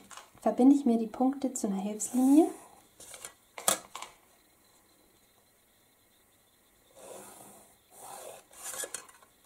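A pencil scratches along a ruler on paper.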